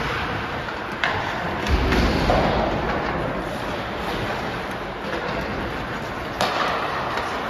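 Hockey sticks clack sharply against a puck now and then.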